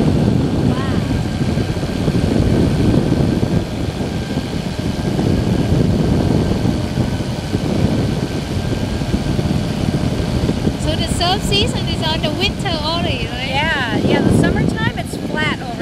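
Wind rushes loudly past in flight.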